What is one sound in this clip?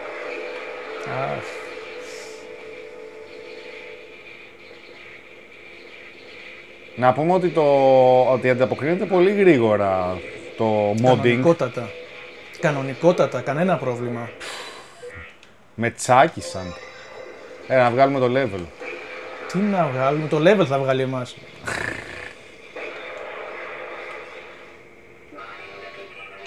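Electronic video game music plays through a television speaker.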